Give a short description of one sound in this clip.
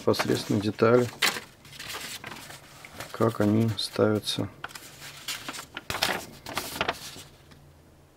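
Paper sheets rustle and crinkle as they are unfolded.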